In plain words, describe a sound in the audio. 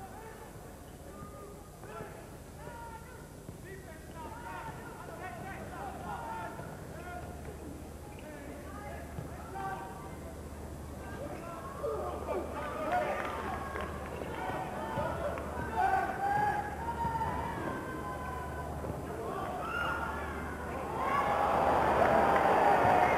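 A crowd murmurs in a large echoing arena.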